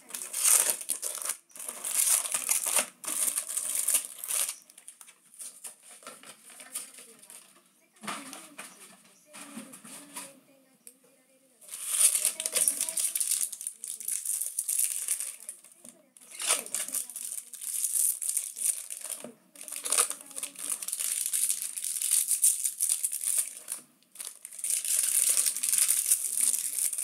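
Foil packs crinkle and rustle as they are handled up close.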